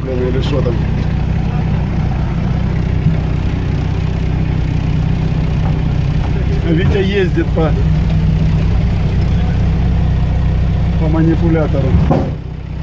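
An engine rumbles steadily, heard from inside a vehicle.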